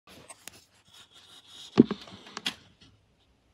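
Hands bump and rub against a microphone.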